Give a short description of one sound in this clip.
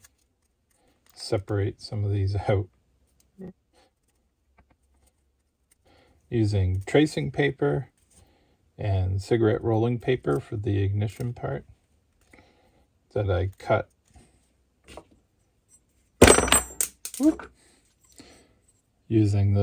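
Small plastic pieces click softly as fingers handle them.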